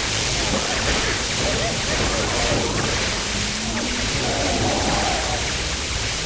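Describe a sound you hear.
Laser beams zap and whoosh steadily in a busy game battle.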